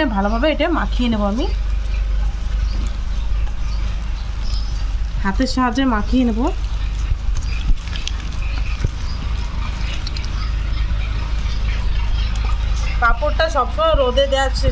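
Hands squish and mash soft boiled potatoes in a metal bowl.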